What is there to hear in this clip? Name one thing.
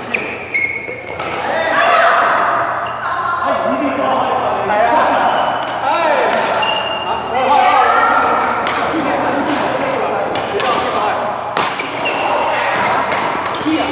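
Men and women talk and call out with animation around a court.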